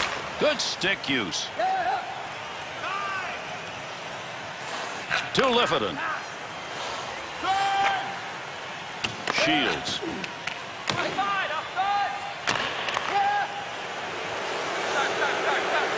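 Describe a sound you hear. Ice skates scrape and glide on ice.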